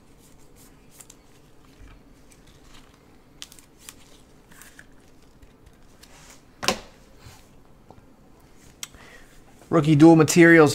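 Plastic card cases click and tap softly as they are handled.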